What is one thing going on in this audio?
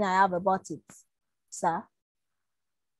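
A woman speaks through an online call.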